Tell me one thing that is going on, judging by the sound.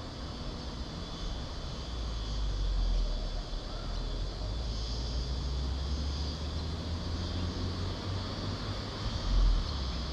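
Insects buzz steadily in the trees.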